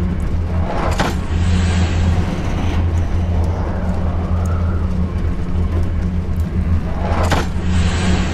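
A heavy metal lever clanks into place.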